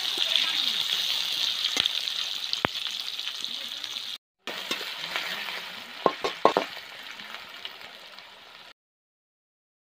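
A metal spatula scrapes against a wok.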